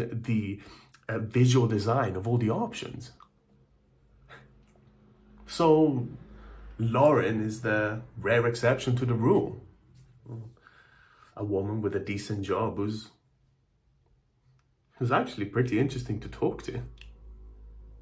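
A young man talks to a microphone with animation, close up, in short bursts.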